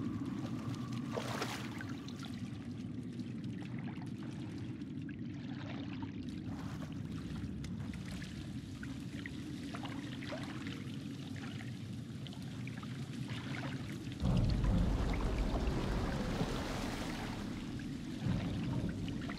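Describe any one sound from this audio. A man wades through deep water with sloshing splashes.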